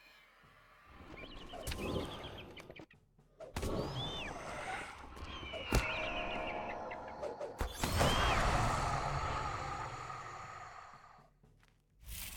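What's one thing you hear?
Magical spell effects whoosh and crackle during a fight.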